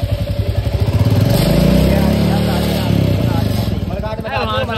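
A motorcycle engine revs up and settles back down.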